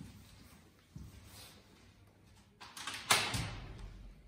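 A door lock clicks.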